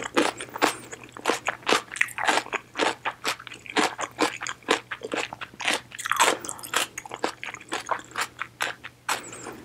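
Noodles are slurped loudly up close.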